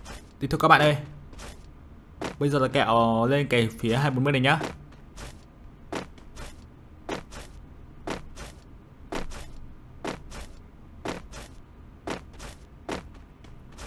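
Footsteps run steadily over grass.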